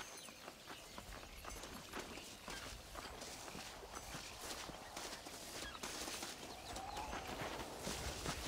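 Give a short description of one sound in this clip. Footsteps crunch quickly on a dirt path.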